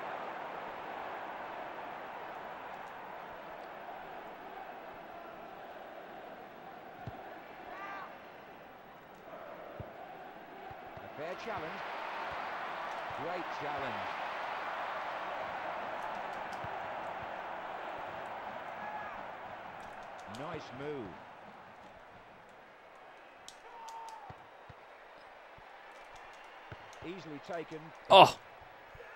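A crowd roars steadily in a football video game.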